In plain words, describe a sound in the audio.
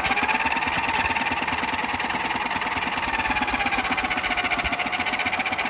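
A small single-cylinder riding lawn mower engine idles.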